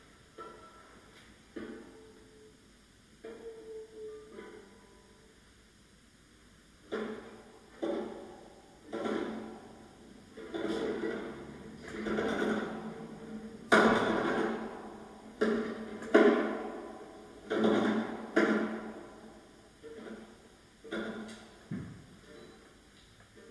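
A violin plays solo in an echoing hall, with sharp accented strokes and ringing pauses.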